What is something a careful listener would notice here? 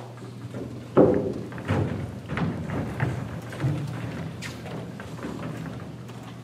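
Footsteps thud across a wooden stage as performers walk off.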